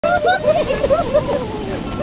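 A bull's hooves splash through shallow surf.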